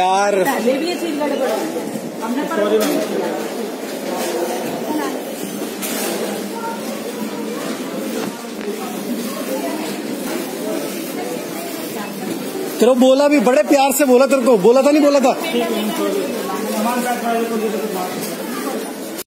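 Several men and women talk and argue loudly close by.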